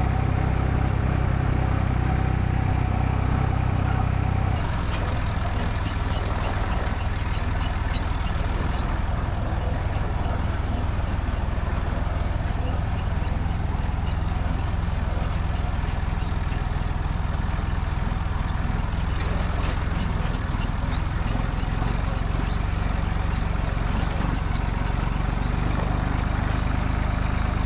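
A tractor engine chugs loudly and steadily up close.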